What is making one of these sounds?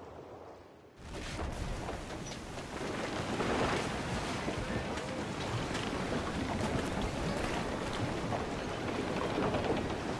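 Wind and waves roar steadily around a sailing ship.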